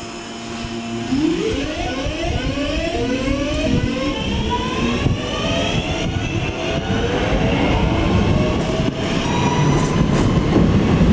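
An electric train pulls away with a rising motor whine.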